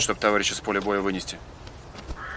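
A man speaks firmly up close.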